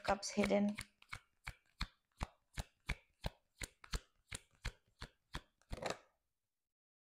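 Playing cards flick and tap in a steady rhythm.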